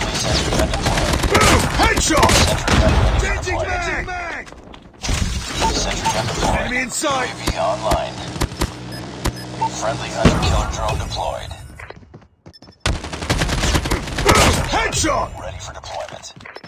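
An assault rifle fires in short, fast bursts.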